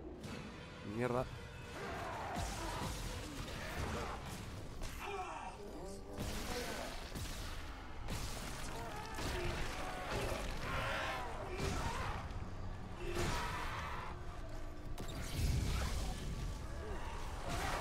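A weapon fires in sharp bursts.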